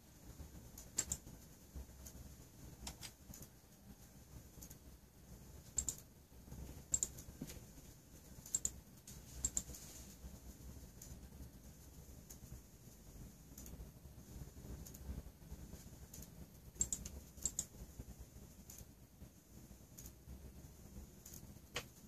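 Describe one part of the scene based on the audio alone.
Candle flames crackle and sputter softly now and then.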